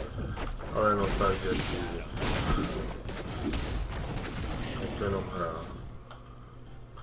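Sword strikes and magic blasts clash rapidly in a fight.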